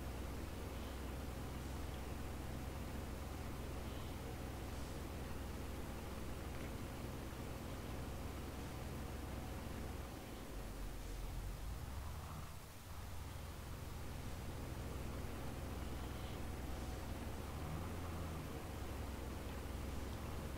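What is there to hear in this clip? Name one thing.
Grain pours from an auger into a trailer.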